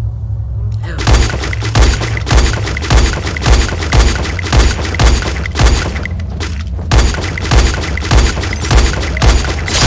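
Rifle shots fire one after another.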